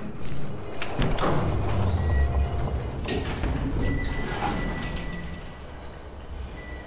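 An elevator rumbles low as it moves.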